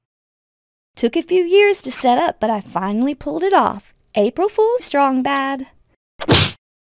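A woman speaks with animation in a high cartoon voice.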